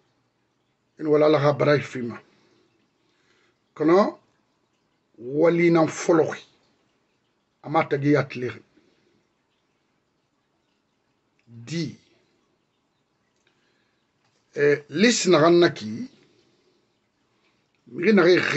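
A middle-aged man speaks calmly and earnestly in short bursts with pauses, close to a microphone.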